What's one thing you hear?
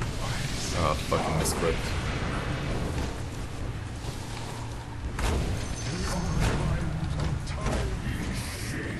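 Magic spells whoosh and crackle in short bursts.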